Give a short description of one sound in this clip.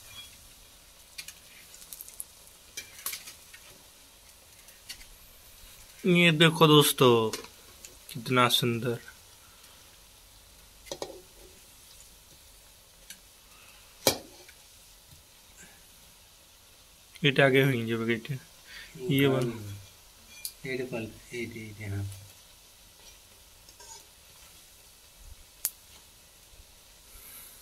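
Oil sizzles and bubbles steadily in a frying pan.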